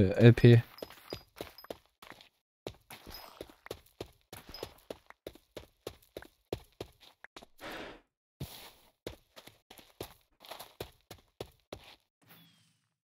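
Game footsteps patter quickly on the ground.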